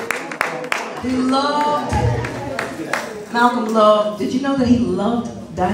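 A woman sings through a microphone.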